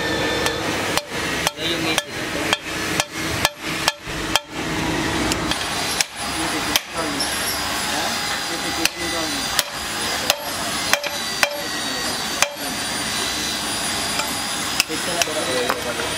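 A hammer strikes metal in sharp, repeated blows.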